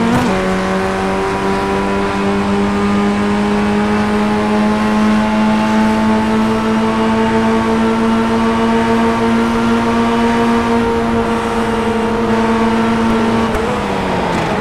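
A racing car engine roars at high, steady revs.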